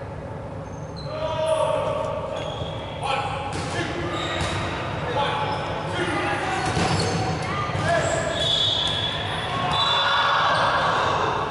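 Balls thud on a wooden floor and against bodies.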